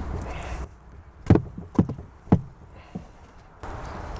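Wooden frames knock and scrape against each other.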